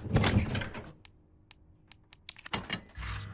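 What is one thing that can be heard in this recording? Short electronic clicks tick in quick succession.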